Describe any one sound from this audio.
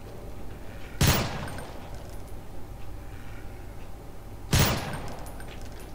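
Single gunshots ring out sharply.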